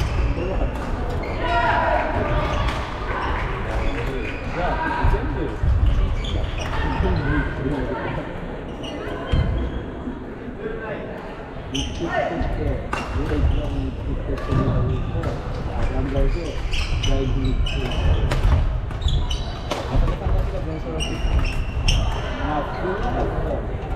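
Shoes squeak on a wooden floor.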